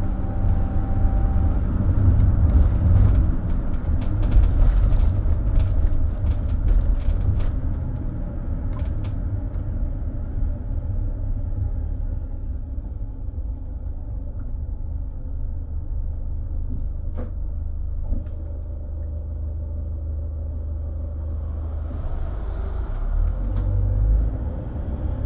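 A bus engine hums low and steadily while driving.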